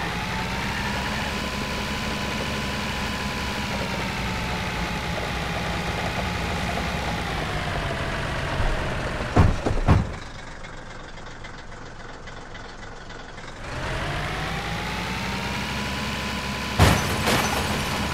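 A truck engine drones steadily, its pitch rising and falling.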